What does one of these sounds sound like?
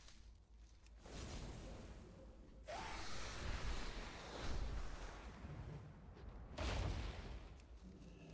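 Wind rushes loudly past a flying creature.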